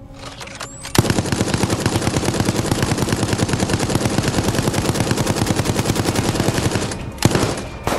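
A machine gun fires in a long, rapid burst.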